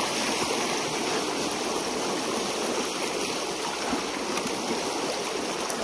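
A rake scrapes and drags through wet debris in water.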